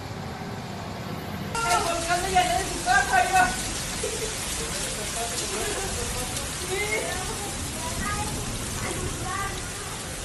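Floodwater rushes and churns down a street outdoors.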